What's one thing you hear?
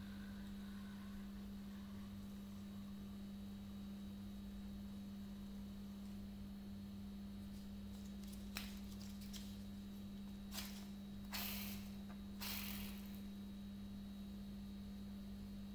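A spinning top whirs softly on a hard floor.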